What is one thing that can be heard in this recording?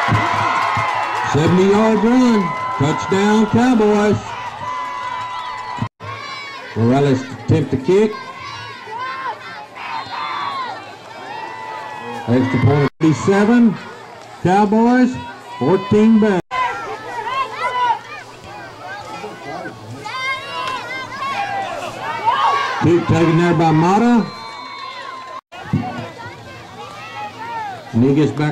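Spectators shout and cheer loudly nearby, outdoors.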